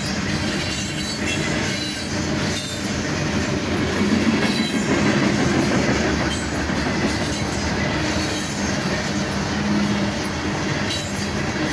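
Steel wheels squeal and hum on the track.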